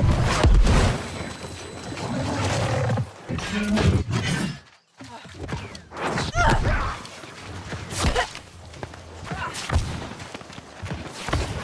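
A sword clangs and slashes in quick blows.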